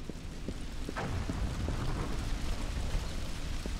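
An explosion booms and a car crashes down.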